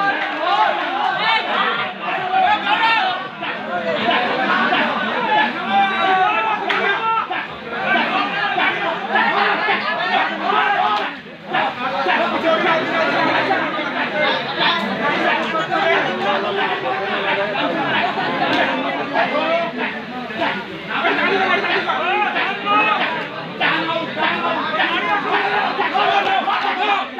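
A large crowd of spectators chatters and shouts continuously outdoors.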